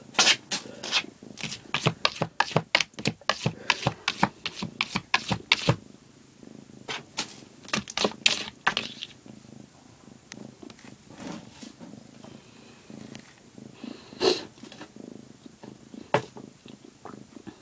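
Kittens shuffle and scrabble against soft bedding close by, with rustling and scratching.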